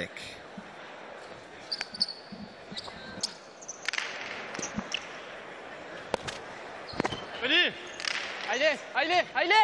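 A hard ball cracks sharply against a wall in a large echoing hall.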